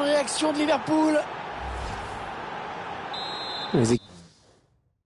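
A large stadium crowd roars.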